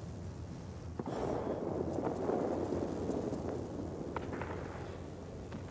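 Wind rushes past a diving plane.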